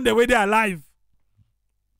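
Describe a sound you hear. An elderly man speaks firmly through a microphone.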